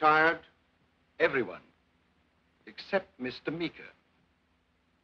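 An elderly man speaks calmly and formally, close by.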